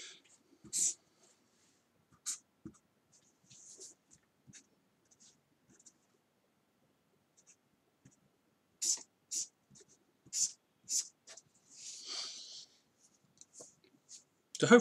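A marker squeaks and scratches across paper in short strokes.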